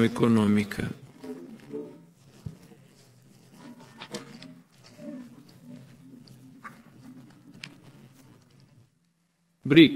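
An elderly man speaks calmly into a microphone.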